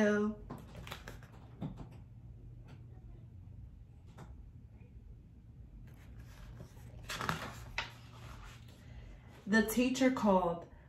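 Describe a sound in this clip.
A young woman reads aloud expressively, close by.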